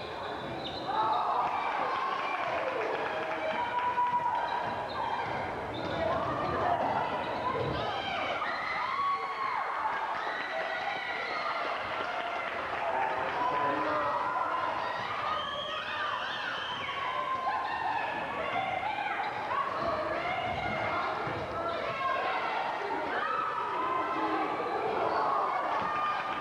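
A crowd of spectators cheers and shouts in an echoing gym.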